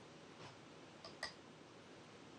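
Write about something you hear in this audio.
A game stone clicks down onto a wooden board.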